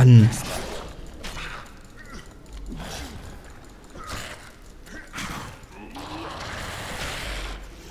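Blows strike in a fight with a monster.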